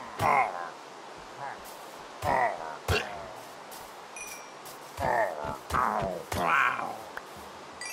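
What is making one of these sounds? A creature grunts in pain as it is struck.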